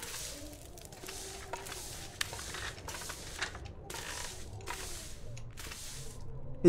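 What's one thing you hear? Slow footsteps creak on a wooden floor.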